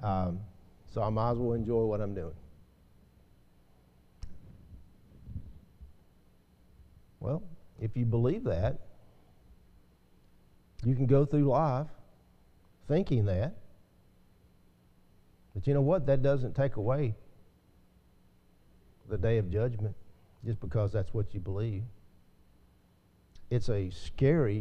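A middle-aged man speaks slowly and calmly into a microphone, with pauses.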